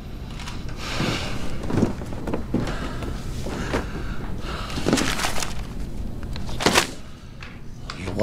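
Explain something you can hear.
Paper rustles as a newspaper is handled.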